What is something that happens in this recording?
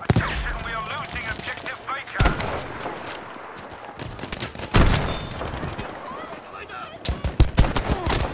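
Rifle shots crack loudly, one at a time, with a rolling echo.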